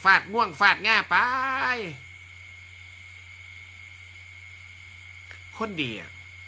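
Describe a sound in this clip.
A middle-aged man speaks close to the microphone in a steady, animated voice.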